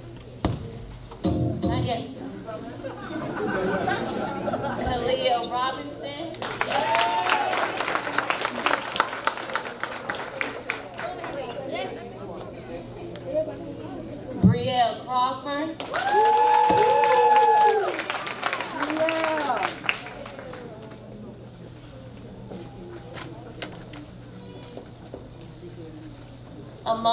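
A young woman speaks into a microphone, announcing over a loudspeaker.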